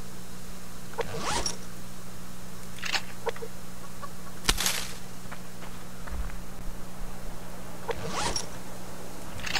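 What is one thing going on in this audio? A game menu opens with a soft swish.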